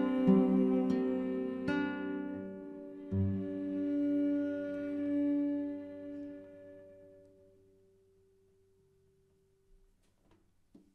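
A cello and a guitar play closing chords that ring out and slowly fade.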